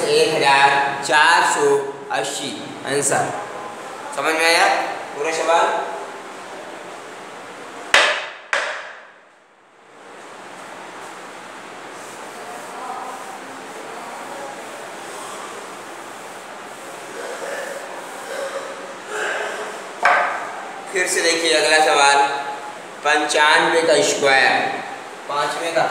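A middle-aged man speaks calmly and clearly, close by.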